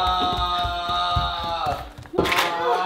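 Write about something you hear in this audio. Footsteps thud down wooden stairs.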